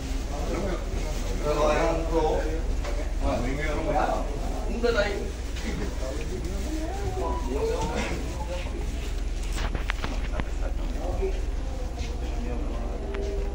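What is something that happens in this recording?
Footsteps shuffle along a walkway.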